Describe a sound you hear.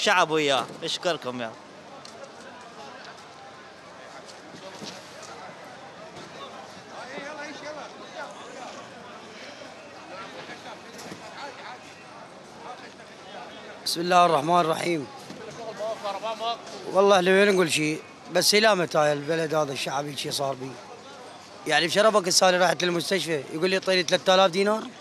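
A busy street market murmurs with distant chatter.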